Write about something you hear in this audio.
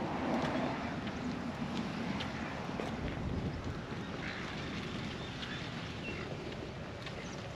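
Wind blusters outdoors against the microphone.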